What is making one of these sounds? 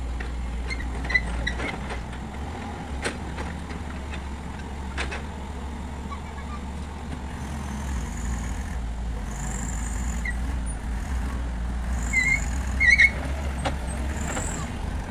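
A diesel crawler excavator engine runs with a low rumble.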